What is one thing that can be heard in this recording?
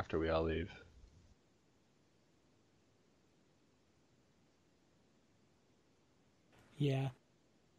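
A man speaks briefly through a microphone, in short bursts.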